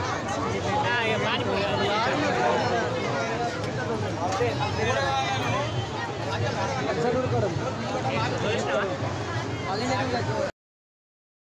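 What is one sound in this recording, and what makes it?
A large crowd of men and women chatters loudly nearby, outdoors.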